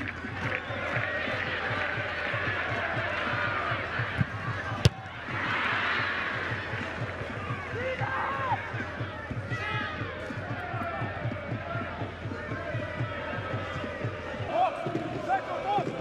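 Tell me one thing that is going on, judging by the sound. A large crowd roars and cheers in an open stadium.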